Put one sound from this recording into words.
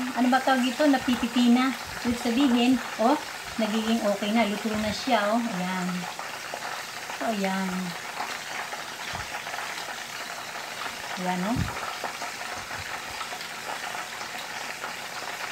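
Food sizzles softly in a frying pan.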